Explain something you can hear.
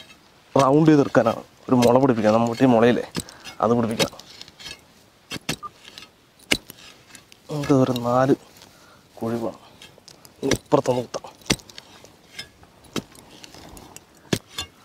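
A metal rod scrapes and taps on the ground and coals.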